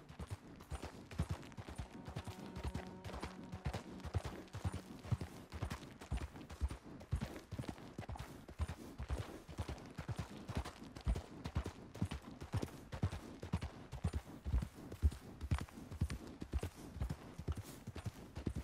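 A horse's hooves clop steadily on a dirt path.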